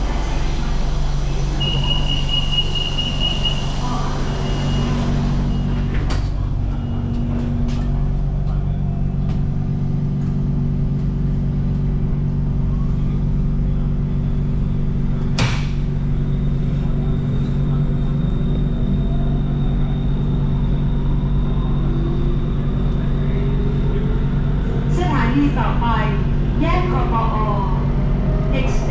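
A train hums steadily.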